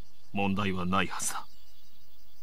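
A young man speaks in a low, tense voice.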